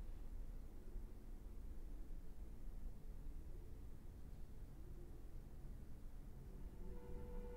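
A cello plays slow, low bowed notes in an echoing room.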